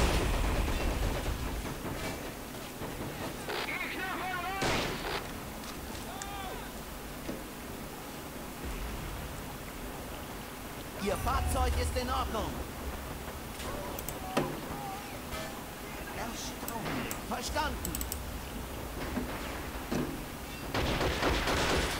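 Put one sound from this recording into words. Tank engines rumble and clank.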